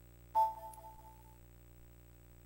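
A short electronic startup chime rings out and quickly fades.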